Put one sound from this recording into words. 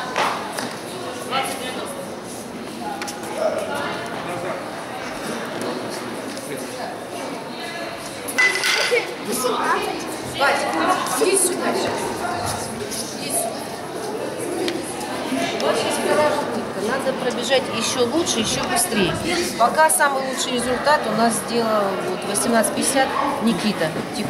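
Many people chatter in an echoing hall.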